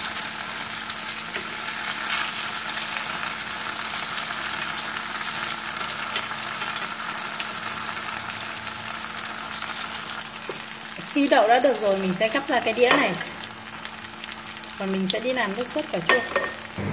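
Tofu sizzles and crackles in hot oil in a pan.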